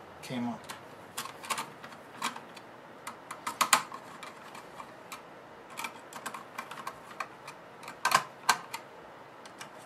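A screwdriver clicks and scrapes against metal screws.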